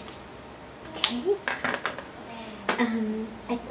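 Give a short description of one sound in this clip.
A pen clatters as it is set down on a hard surface.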